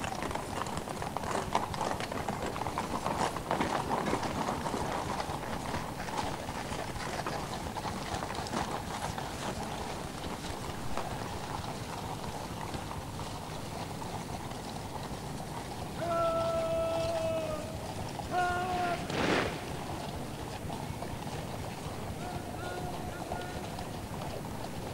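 A large outdoor crowd murmurs in the distance.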